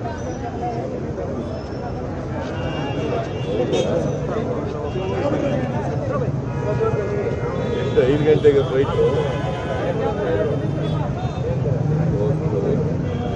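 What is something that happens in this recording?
A crowd of men murmurs in the background.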